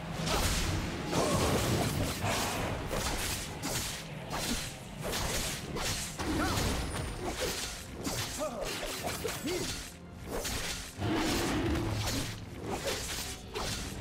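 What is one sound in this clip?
A large winged creature attacks with heavy, crashing blows.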